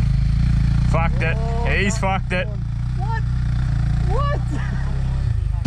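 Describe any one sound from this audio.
A dirt bike engine revs up the hill.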